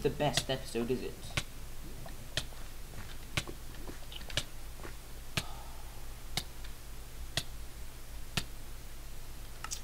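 Lava pops and crackles with sharp, regular clicks.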